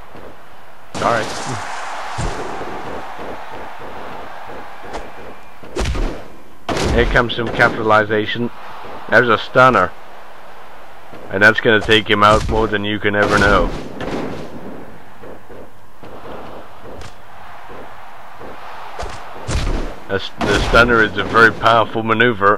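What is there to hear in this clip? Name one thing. Heavy thuds land as wrestlers slam each other.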